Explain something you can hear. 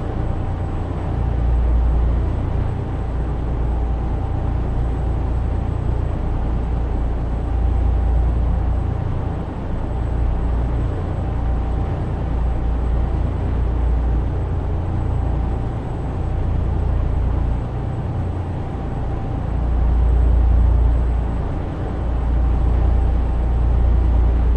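A truck engine rumbles low and steady.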